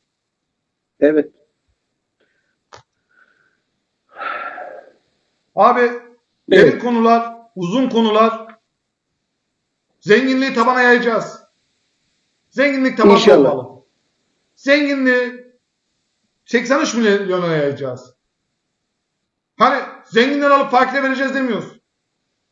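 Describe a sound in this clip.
A middle-aged man speaks calmly over an online call, in short phrases with pauses.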